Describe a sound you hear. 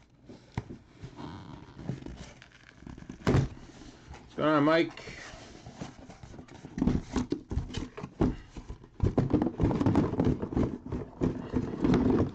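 Cardboard scrapes and rustles as hands open a box.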